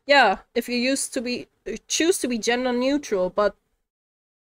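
A young woman speaks quickly and with animation into a microphone.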